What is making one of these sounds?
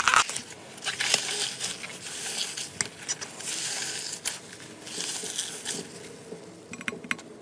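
Hands squish and tear soft, sticky putty with crackling pops.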